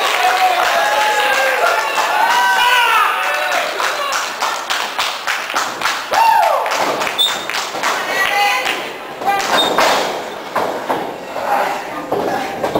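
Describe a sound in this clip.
A crowd shouts and cheers in a large echoing hall.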